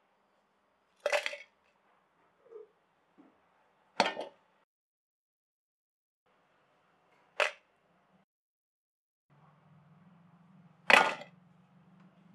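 Ingredients drop into a metal jar with sharp clinks.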